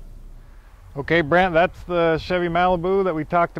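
A man speaks with animation outdoors, close to the microphone.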